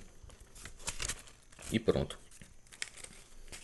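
Notebook pages rustle and flip.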